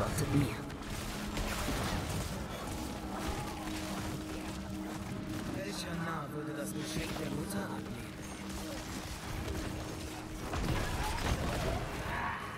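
Spells and blows crash and clash in a fierce fight.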